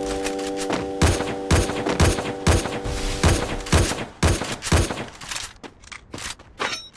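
Gunshots crack in quick, sharp bursts.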